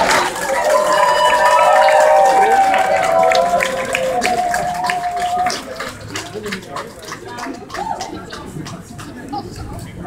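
A crowd claps along outdoors.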